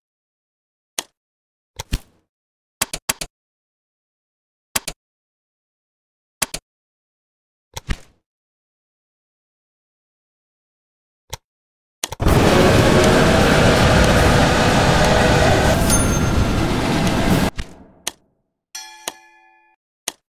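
Short interface clicks sound as menus open and close.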